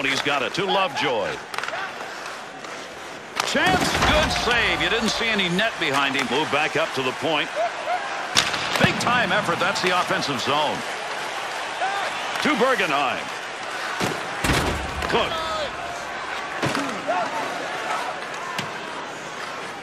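Sticks click against a puck.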